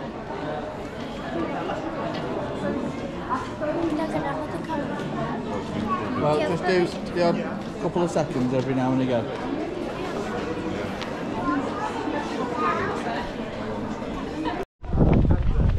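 A crowd murmurs indoors in a hall with echo.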